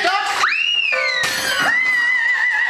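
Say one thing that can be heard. A woman's voice rises in a high, whooping cry.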